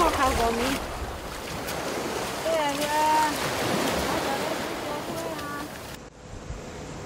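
Small waves wash onto a beach.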